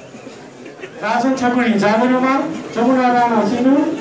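A man speaks loudly through a loudspeaker in an echoing hall.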